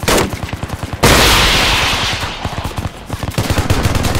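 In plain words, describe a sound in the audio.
A loud explosion booms nearby and rumbles away.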